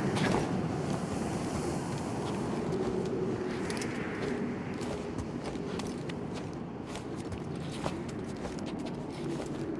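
Clothing and gear scrape and rustle against rock as a person squeezes through a narrow gap.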